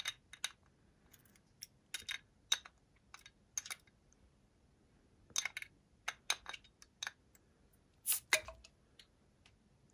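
Glass clinks and taps against a glass bottle close to a microphone.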